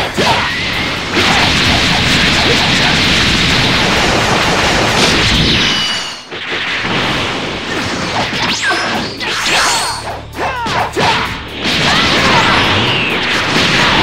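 Energy blasts roar and crackle loudly.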